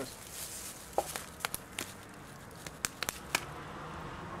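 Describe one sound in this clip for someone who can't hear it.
Hands slap and clap together in a quick handshake.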